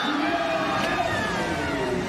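A young woman shouts excitedly.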